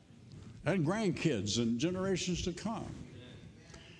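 An elderly man speaks with emphasis through a microphone.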